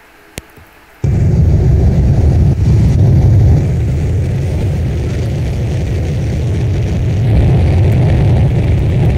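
Jet engines roar steadily and loudly.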